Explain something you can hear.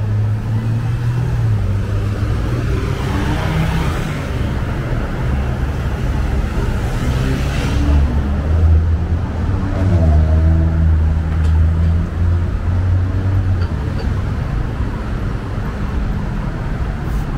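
Engines hum steadily in the distance.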